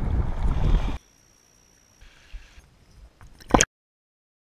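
A stream babbles over stones.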